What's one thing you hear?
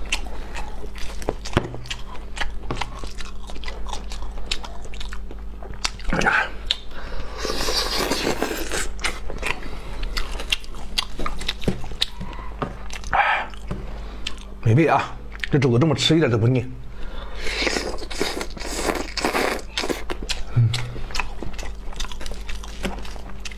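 A man chews and smacks his lips on braised meat close to a clip-on microphone.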